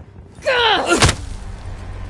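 A heavy blow lands with a hard thud.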